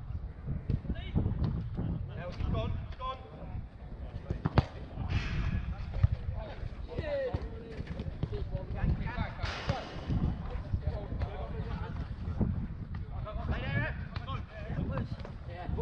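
Men shout to each other outdoors during a football game.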